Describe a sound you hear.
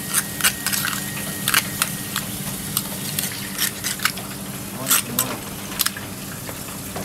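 A knife clicks and scrapes against clam shells.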